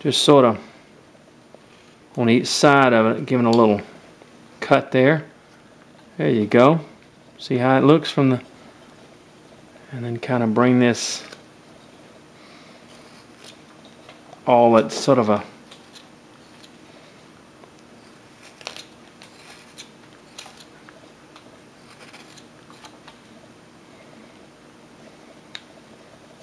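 A carving knife whittles shavings from a block of wood.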